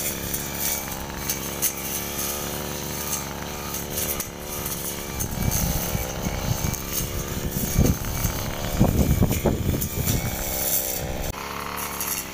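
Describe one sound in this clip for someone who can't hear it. A string trimmer engine whines steadily close by.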